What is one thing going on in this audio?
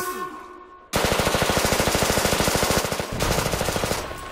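A rifle fires in a rapid automatic burst.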